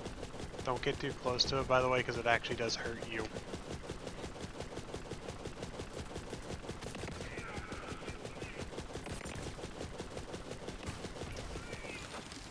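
A rapid-fire gun shoots in fast, steady bursts.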